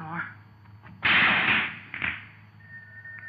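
Billiard balls clack together and scatter.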